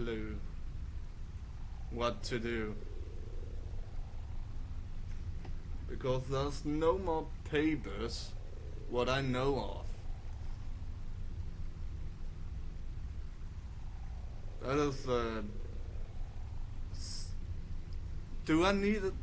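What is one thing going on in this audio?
A young man talks in short bursts into a close microphone, pausing often.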